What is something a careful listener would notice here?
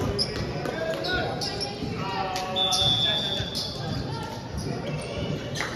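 Many voices of young players chatter and call out in a large echoing hall.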